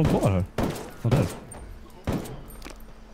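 A pistol fires a sharp shot nearby.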